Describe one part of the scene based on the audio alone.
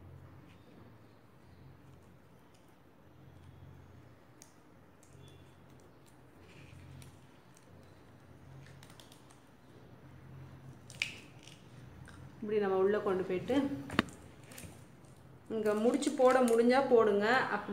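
Plastic cords rustle and click softly as hands weave them.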